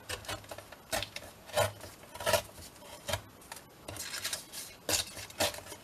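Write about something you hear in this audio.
A strip of backing paper peels off and crinkles.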